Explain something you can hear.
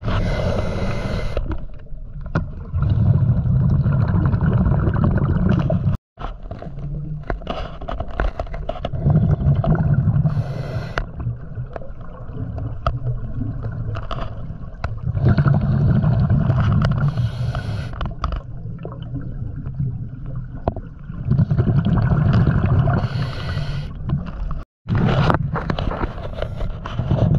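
A diver's exhaled bubbles rumble and gurgle underwater in repeated bursts.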